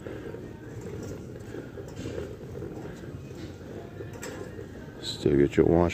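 A shopping cart rolls and rattles over a smooth hard floor.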